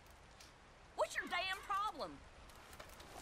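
A man speaks angrily up close.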